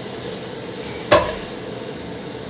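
Sliced onions drop into a metal pot.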